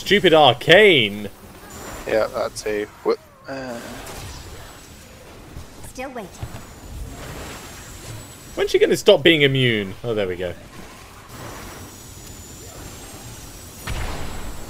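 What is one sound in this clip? Magic beams zap and crackle in a game.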